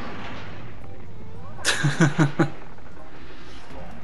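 Sparkly magical chimes twinkle briefly.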